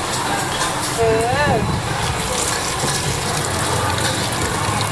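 Water runs from a tap and splashes into a metal sink.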